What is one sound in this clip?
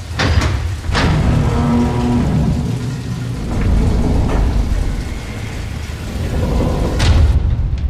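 A heavy vault door swings open with a low, grinding rumble.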